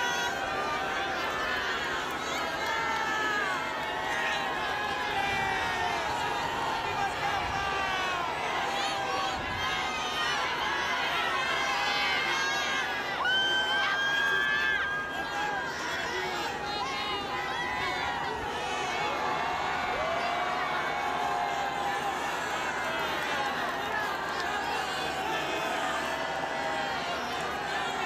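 A large crowd cheers and shouts excitedly outdoors.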